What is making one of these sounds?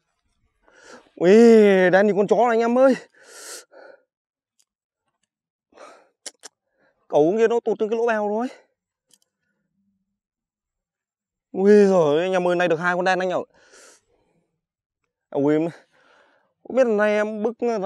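A young man talks calmly into a clip-on microphone, close by.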